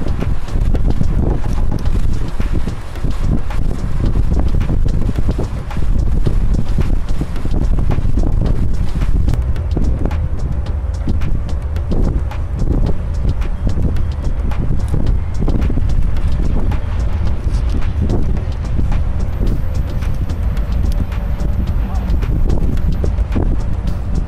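Wind buffets loudly outdoors on a moving boat.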